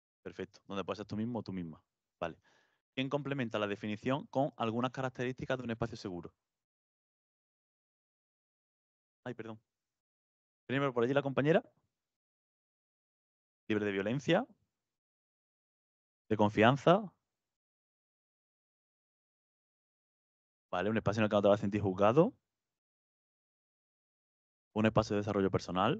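A man speaks with pauses through a microphone.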